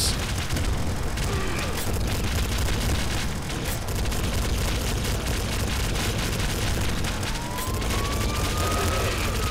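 Rapid gunfire crackles and pops without pause.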